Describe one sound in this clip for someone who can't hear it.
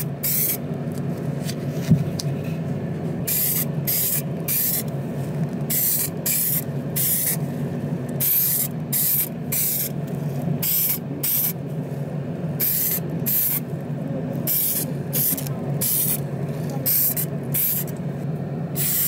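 A spray gun hisses in short, repeated bursts.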